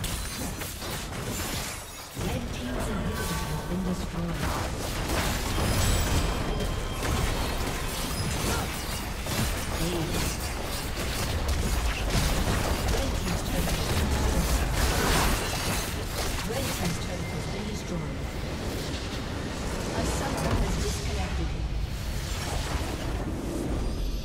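Spell blasts and weapon hits crash and clang rapidly in a busy game fight.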